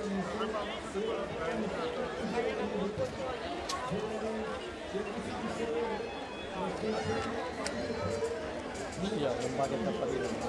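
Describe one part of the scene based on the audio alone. Folk instruments play a droning, lively tune.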